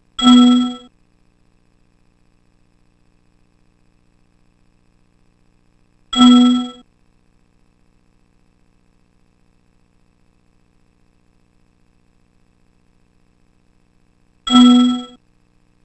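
A bright chime rings out as a page turns.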